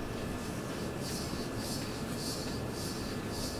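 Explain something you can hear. A knife scrapes along a vegetable in steady, repeated strokes.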